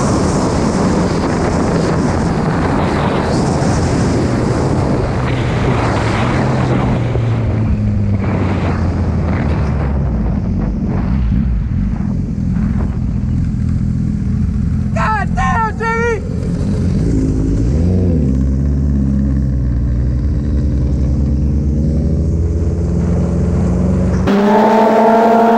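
A motorcycle engine roars and revs as the bike rides fast.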